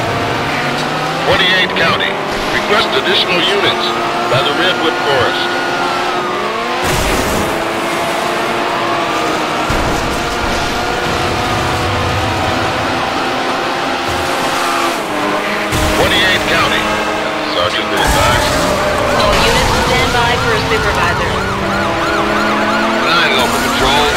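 A racing car engine roars and revs up and down through the gears.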